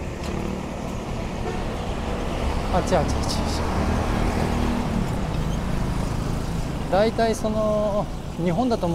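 Traffic rumbles past on a road outdoors.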